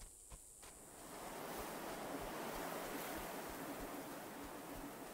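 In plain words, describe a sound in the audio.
Footsteps crunch on loose stones.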